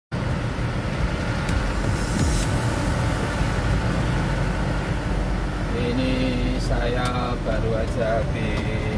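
A truck's engine rumbles steadily from inside the cab.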